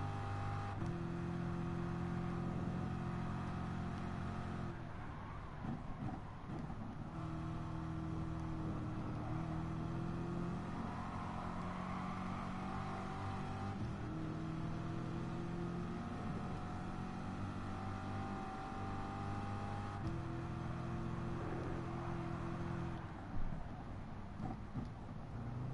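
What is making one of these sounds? A racing car engine roars loudly, revving up through the gears and dropping as it brakes for corners.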